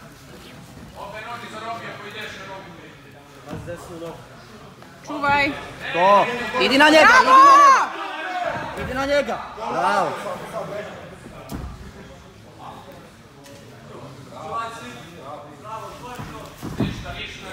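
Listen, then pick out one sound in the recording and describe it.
Bodies thud and scuff on a padded mat.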